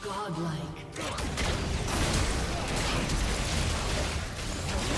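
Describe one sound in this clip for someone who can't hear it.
Magic spells whoosh and blast in a fast game battle.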